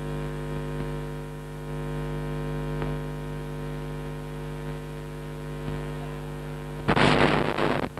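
A rock band holds a loud, ringing chord through loudspeakers in a large hall.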